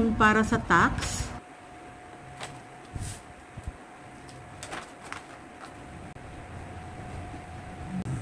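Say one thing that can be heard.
Stiff paper rustles as it is lifted and folded.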